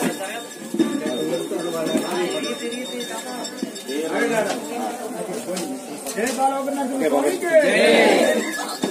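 Men talk close by with animation.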